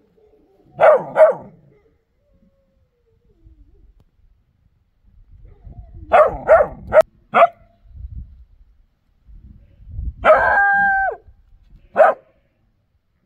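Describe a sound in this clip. A young dog barks in short bursts close by.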